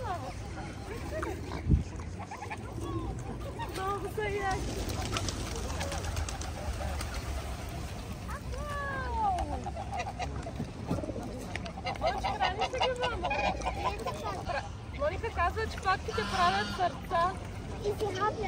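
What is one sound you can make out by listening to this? Geese and swans honk and call close by.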